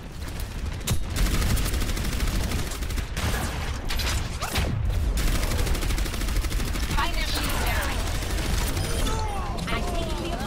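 A weapon fires rapid buzzing energy shots.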